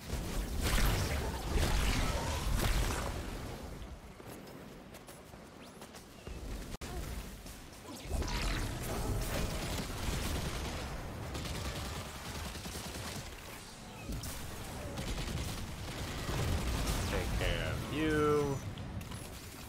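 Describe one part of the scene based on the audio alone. Gunfire and blasts boom from a video game.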